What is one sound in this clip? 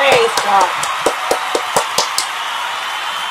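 A woman taps her hands together several times.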